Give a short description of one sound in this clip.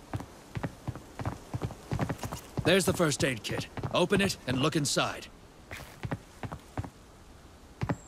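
Footsteps fall on pavement.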